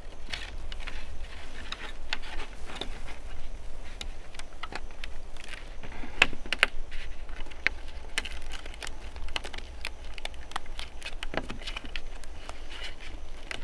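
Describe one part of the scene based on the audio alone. Gloved hands rustle and creak as they tie a tight binding around a bamboo pole.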